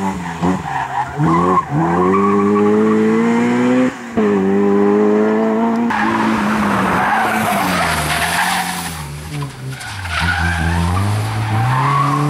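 Tyres screech on asphalt as a car slides through a turn.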